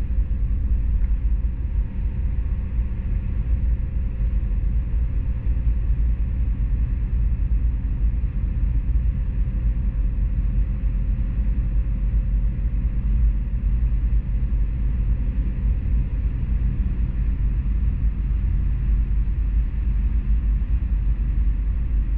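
A car's engine hums steadily.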